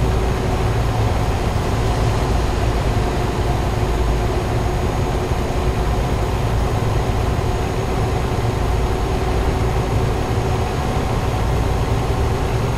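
A truck engine hums steadily while driving on a road.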